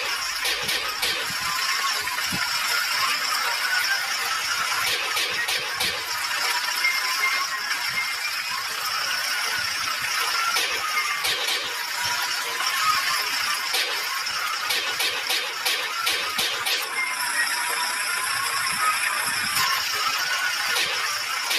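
Rain patters steadily.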